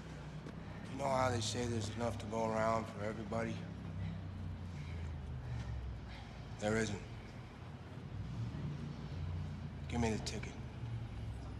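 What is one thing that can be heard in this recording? A man speaks calmly and firmly nearby.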